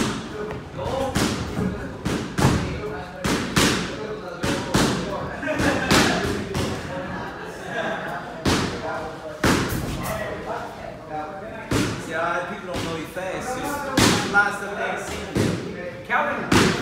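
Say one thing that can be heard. A man exhales sharply with each punch.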